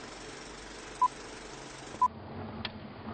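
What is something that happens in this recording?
A short electronic beep sounds twice.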